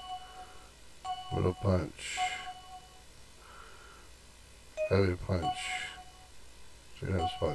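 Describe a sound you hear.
Short electronic blips sound from a game menu.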